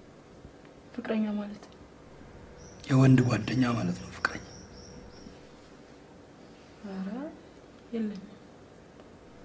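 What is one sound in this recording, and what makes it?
A young woman answers calmly, close by.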